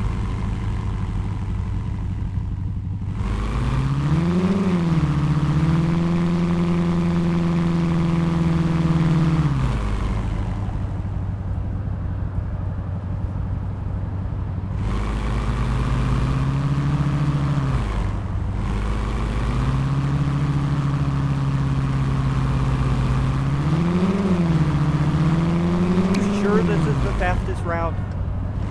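An engine idles with a low steady hum.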